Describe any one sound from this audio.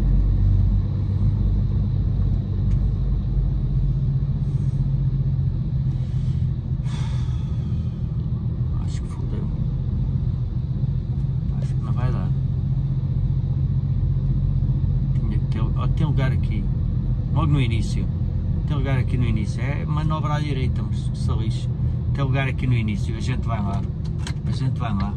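A vehicle's engine rumbles steadily from inside the cabin.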